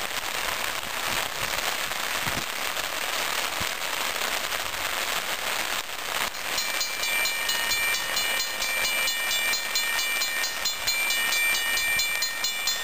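Rain falls outdoors on a wet road.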